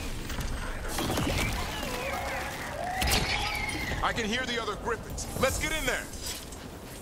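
Creatures screech and shriek.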